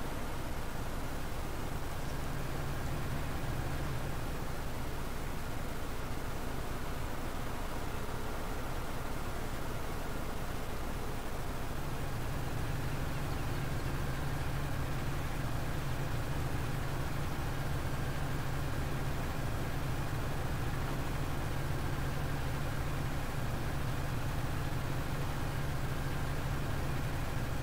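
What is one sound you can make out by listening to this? A tractor engine drones steadily, growing louder partway through.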